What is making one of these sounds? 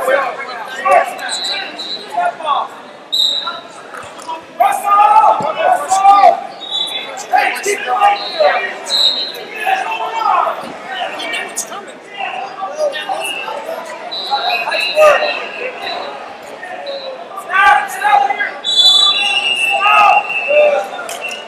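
Shoes squeak on a mat.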